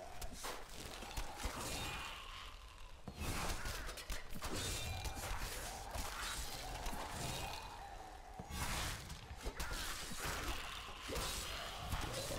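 Magic blasts and weapon blows crash and whoosh in a fast fight.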